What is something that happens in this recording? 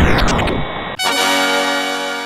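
A short tune plays.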